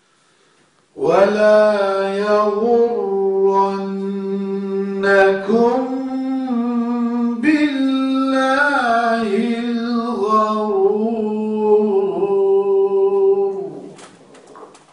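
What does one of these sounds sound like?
An elderly man chants in a long, slow, wavering melody through a microphone.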